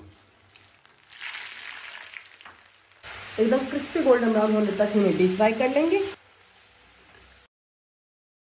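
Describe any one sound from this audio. Hot oil sizzles and bubbles loudly as food fries.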